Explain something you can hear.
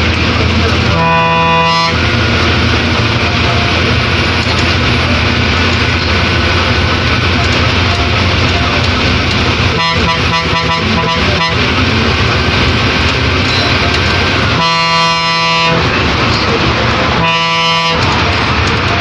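A bus horn blows loudly in several long blasts and quick bursts.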